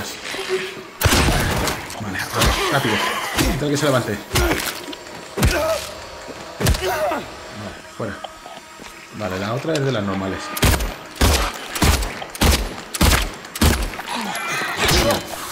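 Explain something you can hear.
Gunshots bang loudly in a row.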